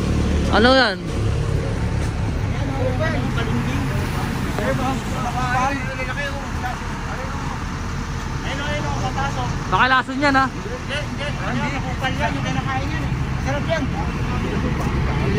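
Several men talk casually nearby outdoors.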